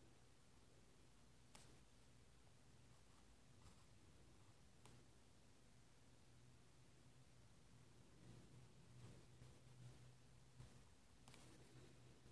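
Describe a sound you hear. A pen taps and scratches softly on paper.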